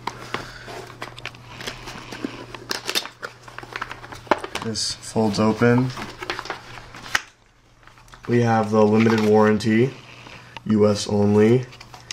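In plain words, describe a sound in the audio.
Cardboard packaging rustles and scrapes as hands open a box.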